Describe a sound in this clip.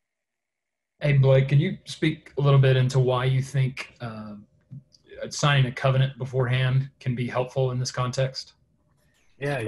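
A young man speaks earnestly over an online call.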